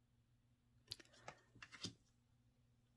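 A card is set down lightly on a wooden table.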